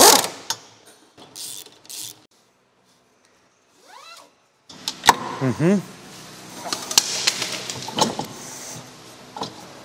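Metal tools clink and knock against car parts.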